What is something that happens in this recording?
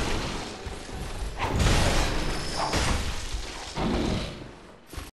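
Heavy blows thud and slash.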